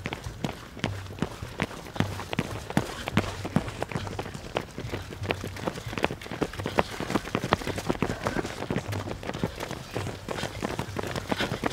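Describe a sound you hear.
Many running shoes patter on pavement close by.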